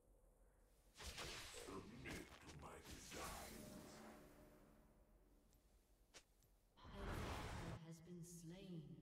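Game spell effects whoosh and clash.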